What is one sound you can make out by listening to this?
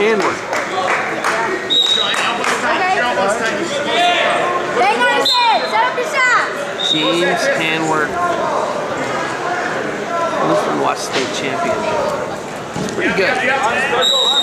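Shoes squeak on a mat as wrestlers move about.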